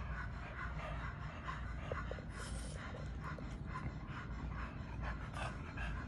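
A dog snorts and grunts.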